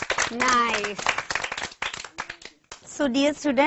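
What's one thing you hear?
Children clap their hands in rhythm.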